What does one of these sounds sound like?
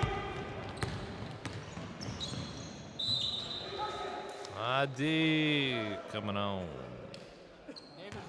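A basketball bounces on the floor, echoing in a large hall.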